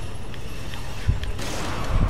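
A gunshot bangs once.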